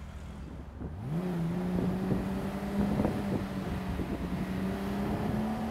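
A car engine hums, rises in pitch as it speeds up, then runs steadily.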